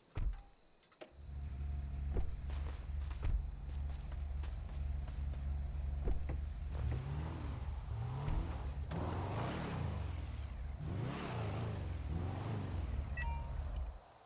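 A car engine idles with a low, steady hum.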